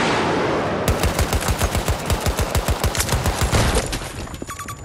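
A rifle fires a rapid burst of shots nearby.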